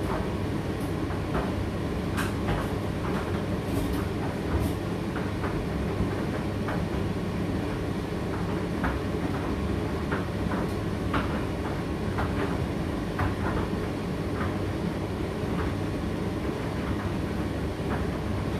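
A condenser tumble dryer hums and rumbles as it runs.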